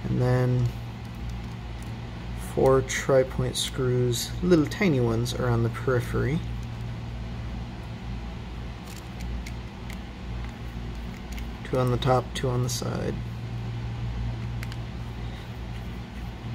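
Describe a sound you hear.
A small screwdriver turns screws with faint clicks.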